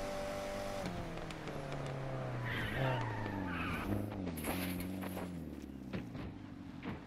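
A car engine roars, then drops in pitch as the car slows down.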